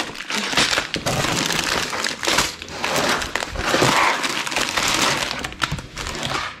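Plastic bags crinkle and rustle close by.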